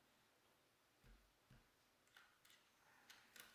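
Metal gun parts click and clatter as they are fitted together.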